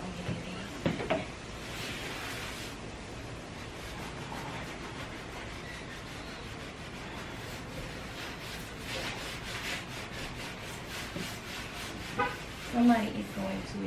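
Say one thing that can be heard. A cloth rubs and squeaks across a wooden tabletop.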